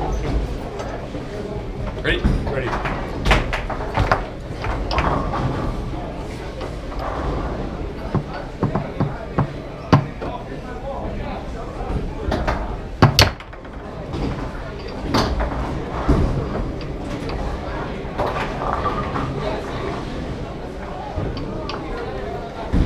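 Foosball rods rattle and spin as players jerk the handles.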